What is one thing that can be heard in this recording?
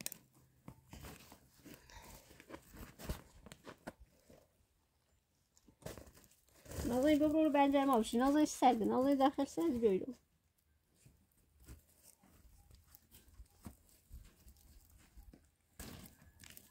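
Cord rustles and scrapes against tent canvas.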